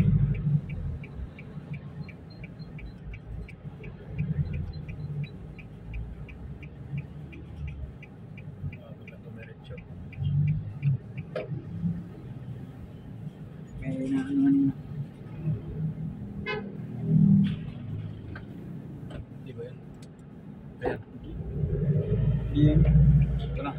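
A car engine hums steadily while driving on a road.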